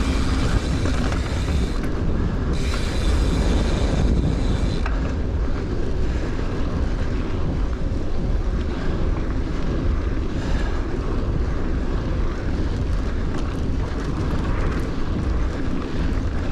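Bicycle tyres crunch and rumble over a dirt track.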